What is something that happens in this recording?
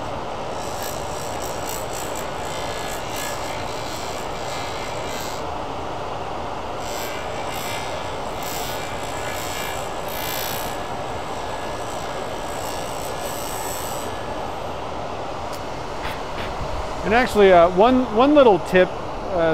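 A small grinder motor whirs steadily.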